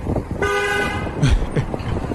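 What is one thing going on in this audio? A car horn honks briefly.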